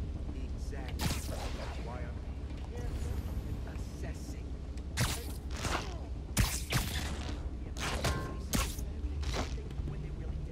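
Web lines shoot out with sharp whooshing zips.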